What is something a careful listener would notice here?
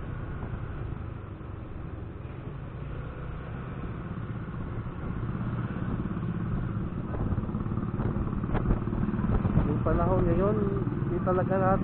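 A motorcycle engine hums steadily as it rides along.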